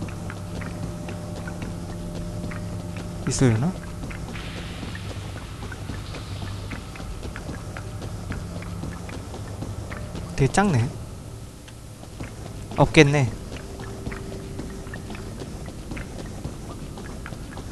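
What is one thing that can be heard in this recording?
Footsteps patter softly on hard ground.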